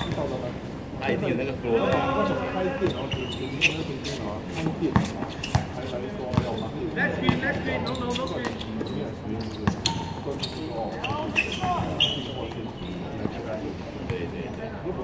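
Young men call out to each other outdoors.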